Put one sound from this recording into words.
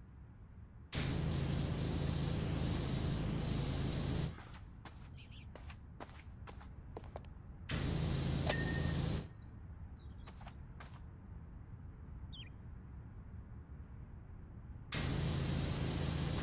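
A pressure washer sprays water in loud, steady hissing bursts.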